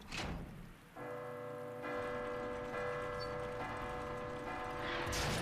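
A large clock bell rings out.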